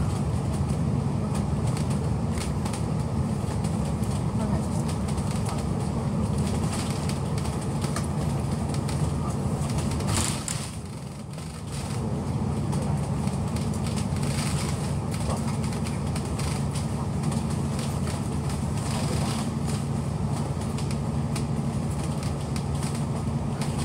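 A train rumbles steadily along at speed.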